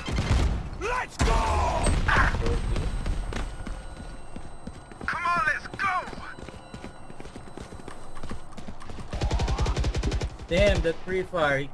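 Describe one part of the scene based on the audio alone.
A submachine gun fires rapid bursts up close.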